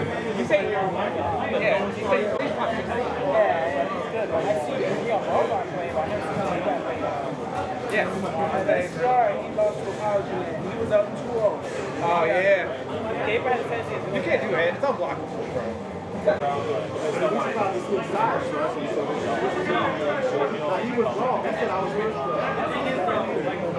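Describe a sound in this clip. A crowd of men and women chatter all around, many voices overlapping.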